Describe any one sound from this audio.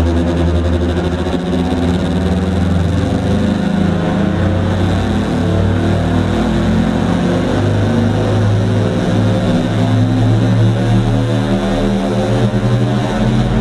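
Droning electronic music plays loudly through a concert sound system in a large hall.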